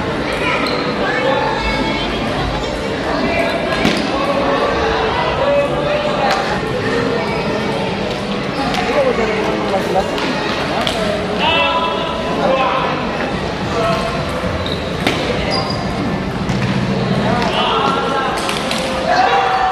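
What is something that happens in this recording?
A ping pong ball clicks back and forth off paddles and a table.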